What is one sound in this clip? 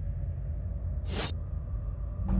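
A menu swoosh sounds as the game menu changes.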